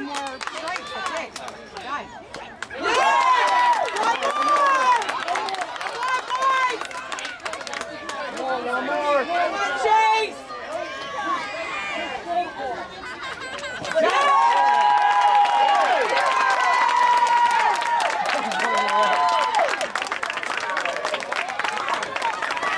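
A crowd of children and adults cheers and shouts outdoors.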